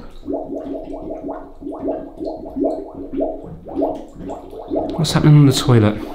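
Water gurgles down a drain.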